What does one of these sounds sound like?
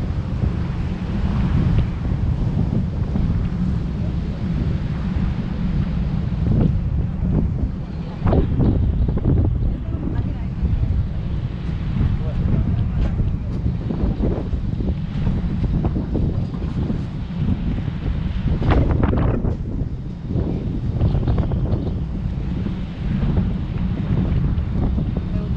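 A boat's engine hums steadily.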